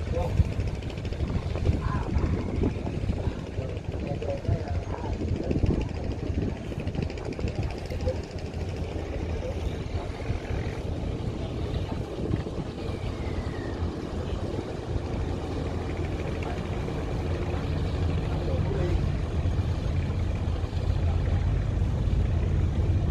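A boat engine chugs steadily at low pitch.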